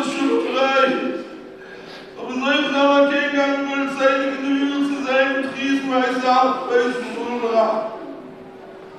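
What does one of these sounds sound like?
An elderly man chants loudly through a microphone in a large echoing hall.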